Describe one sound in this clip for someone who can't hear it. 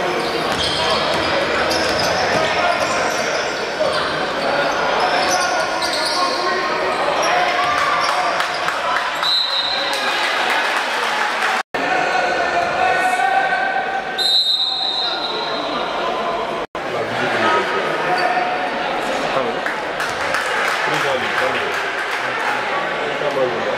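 A crowd in an echoing indoor hall chatters and cheers throughout.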